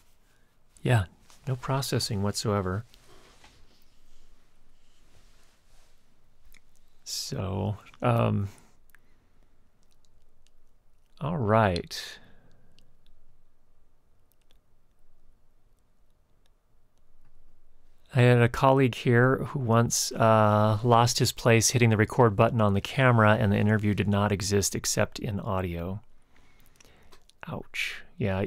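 A middle-aged man speaks with animation, close to a microphone, in short bursts with pauses.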